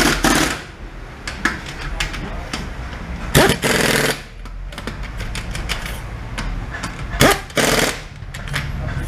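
An impact wrench whirs and rattles in short bursts.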